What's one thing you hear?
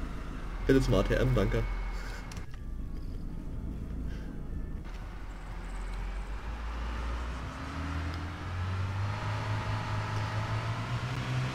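A car engine hums, then revs higher as the car speeds up.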